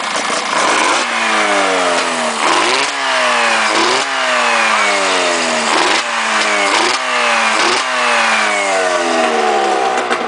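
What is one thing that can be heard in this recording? A two-stroke snowmobile engine in a go-kart is revved in short bursts.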